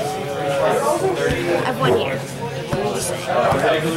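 A card box is set down on a table with a soft thud.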